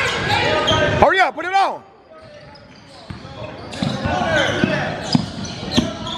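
Sneakers squeal sharply on a hard court.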